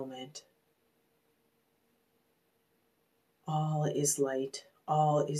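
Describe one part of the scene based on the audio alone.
A woman speaks calmly and softly, close to a microphone.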